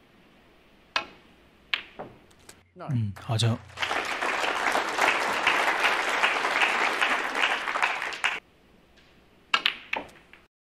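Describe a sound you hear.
A snooker cue strikes a ball with a sharp click.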